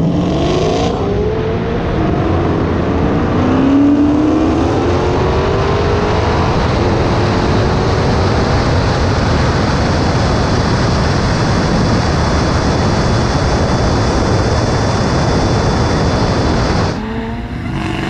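A supercharged V8 muscle car accelerates hard at full throttle, shifting up through the gears.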